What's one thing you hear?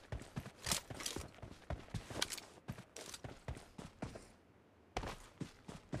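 Footsteps shuffle quickly over dirt and grass.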